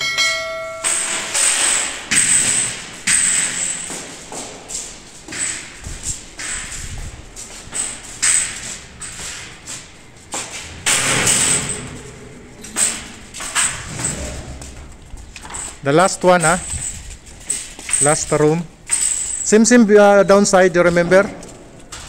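A metal bed frame rattles and clanks as it is carried.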